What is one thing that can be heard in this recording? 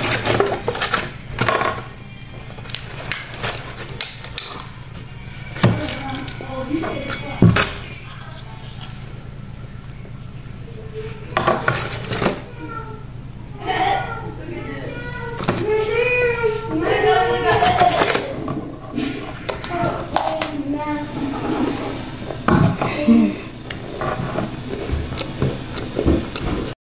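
A boy crunches crackers close to a microphone.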